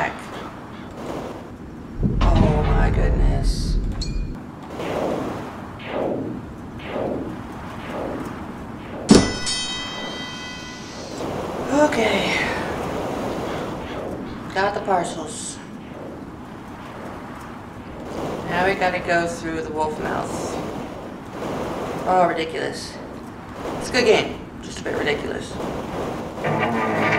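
A young woman talks with animation into a headset microphone, close by.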